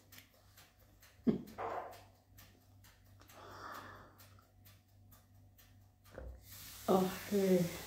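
An elderly woman sips a drink.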